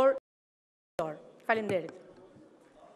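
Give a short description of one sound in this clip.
A woman speaks briefly into a microphone in a large echoing hall.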